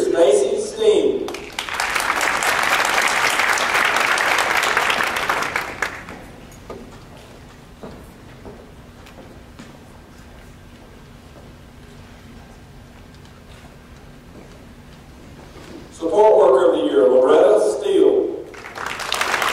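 A man speaks into a microphone over loudspeakers in a large room.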